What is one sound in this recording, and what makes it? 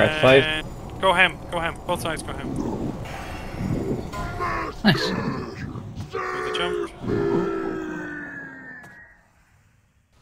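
Spell sounds ring and chime in a fight.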